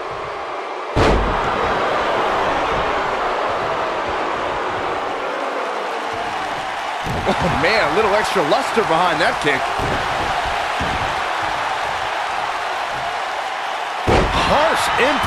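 A body slams onto a ring mat with a heavy thud.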